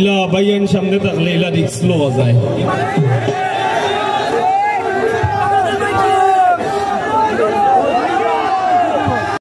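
A keyboard plays along with the singing.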